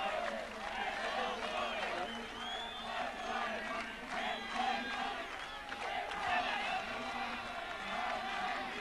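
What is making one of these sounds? A large crowd murmurs outdoors in the distance.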